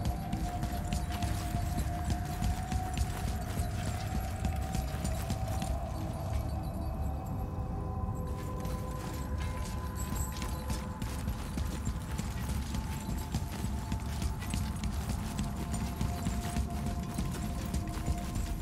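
Footsteps crunch over frozen ground.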